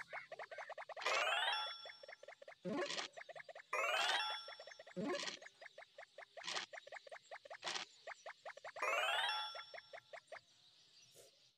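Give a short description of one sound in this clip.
Game pieces tap in quick clicks as they hop along.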